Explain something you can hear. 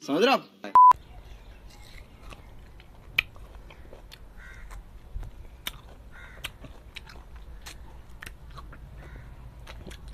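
A man bites and sucks on a juicy lime, with small wet smacks.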